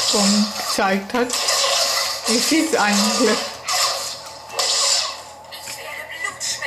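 Laser swords hum and clash in a video game's combat sounds.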